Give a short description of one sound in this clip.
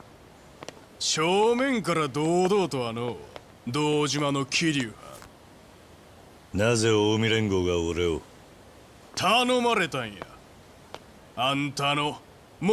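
A man speaks gruffly and mockingly, close by.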